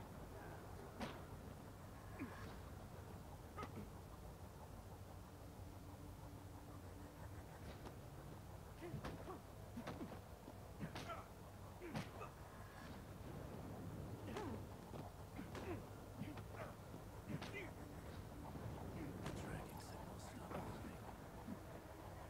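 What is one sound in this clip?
Punches and kicks land with heavy thuds in a fight.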